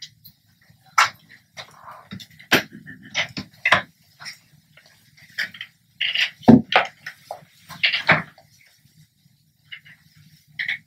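Chairs creak and shuffle as people move.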